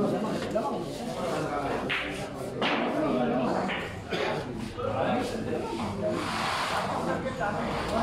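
Billiard balls click together on a pool table.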